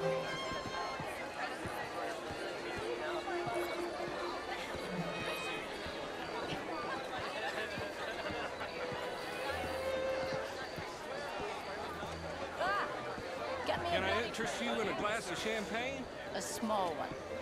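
A crowd of guests chatters and murmurs throughout.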